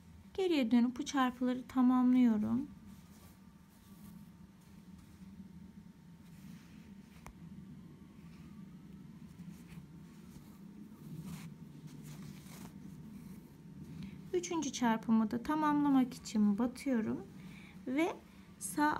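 Thread rasps softly as a needle pulls it through coarse fabric.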